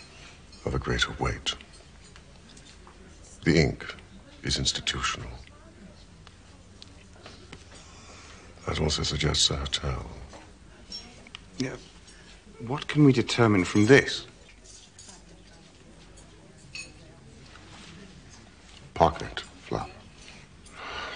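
A man speaks calmly and precisely, close by.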